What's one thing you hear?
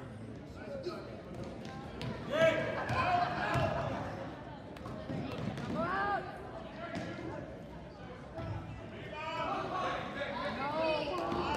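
Spectators murmur and call out in a large echoing gym.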